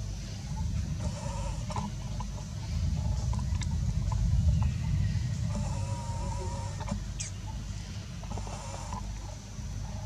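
A baby monkey squeaks in short high cries.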